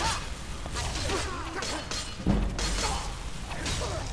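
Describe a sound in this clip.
Metal blades clash and strike.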